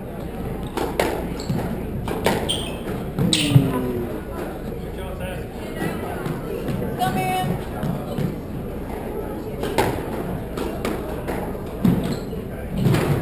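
A squash ball smacks sharply against walls and rackets, echoing in a large hall.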